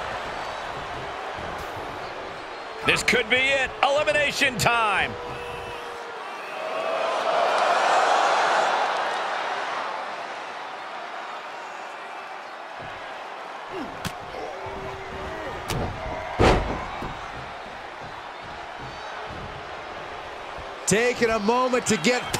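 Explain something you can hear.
A large crowd roars and cheers, swelling loudly for a few seconds.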